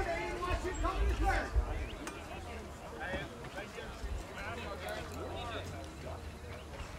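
Men talk and call out outdoors.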